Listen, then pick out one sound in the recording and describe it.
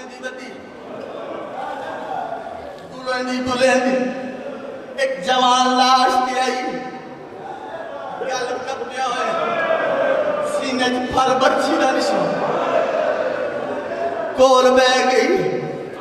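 A man recites in a loud, sorrowful, chanting voice through a microphone, echoing in a hall.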